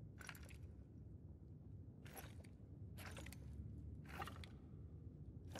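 A stone tile grinds and clicks as it turns, in short bursts.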